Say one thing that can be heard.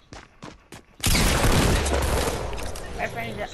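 Gunfire rattles in a loud, rapid burst.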